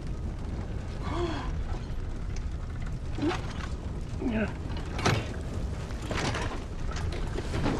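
A man groans weakly, close by.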